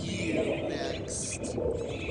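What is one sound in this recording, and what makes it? Bubbles gurgle and pop underwater.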